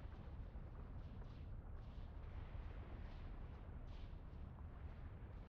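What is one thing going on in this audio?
A low energy aura hums and crackles steadily.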